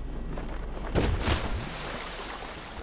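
A body hits the ground with a heavy thud.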